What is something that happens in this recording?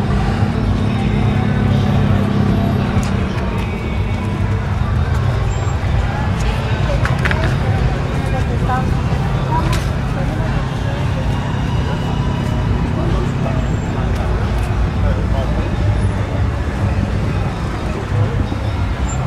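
Cars drive past on the street.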